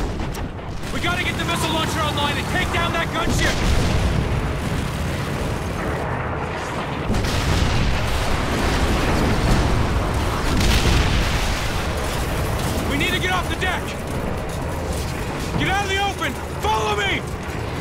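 Explosions boom and rumble all around.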